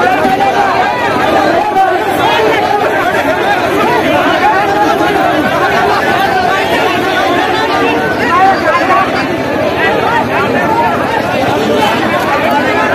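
A large crowd of men chatters and shouts outdoors.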